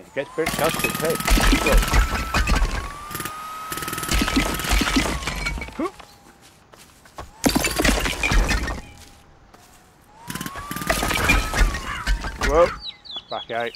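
Bricks and rubble crumble and fall.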